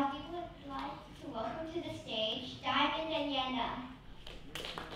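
A young girl speaks into a microphone in a large hall.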